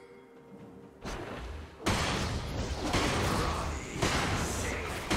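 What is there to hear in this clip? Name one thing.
Game combat effects whoosh and crackle loudly.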